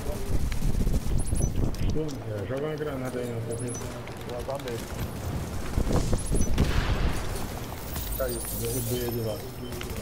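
Explosions and fire roar loudly.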